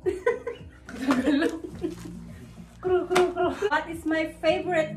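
Young women laugh close by.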